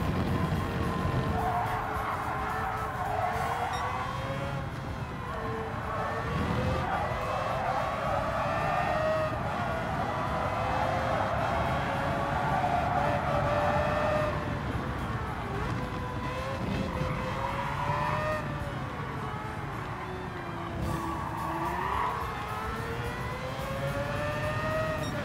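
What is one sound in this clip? A racing car engine roars, rising and falling in pitch as it speeds up and slows down.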